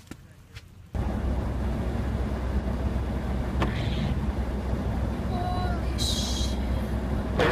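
A car engine hums steadily from inside.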